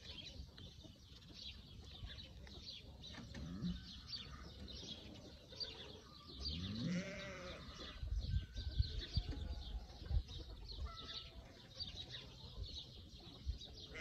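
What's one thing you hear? A pig snuffles and sniffs with its snout.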